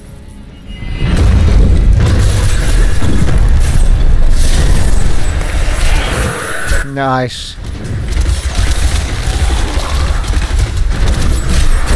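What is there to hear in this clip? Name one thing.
Heavy impacts rumble deeply.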